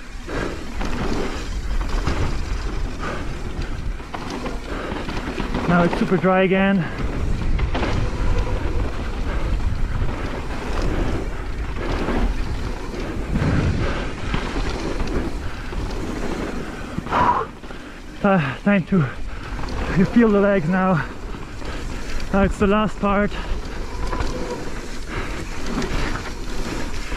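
Wind buffets a microphone.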